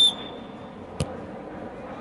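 A football is kicked hard with a thud.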